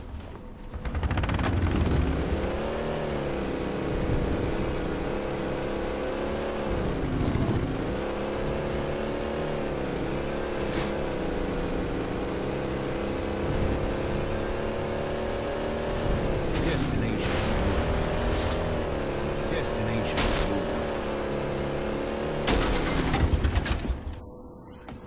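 A game vehicle's engine hums steadily and revs up and down.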